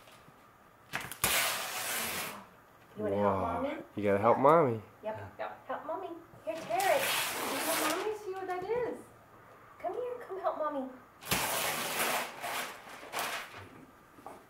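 Wrapping paper rips and tears loudly.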